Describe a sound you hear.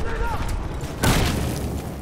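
A flashbang grenade goes off with a loud bang.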